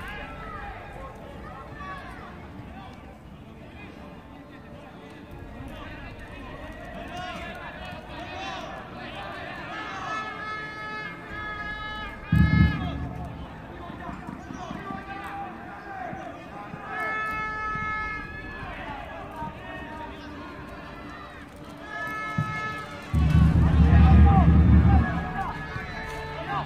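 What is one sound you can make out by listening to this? Men shout and call out to each other across an open outdoor pitch.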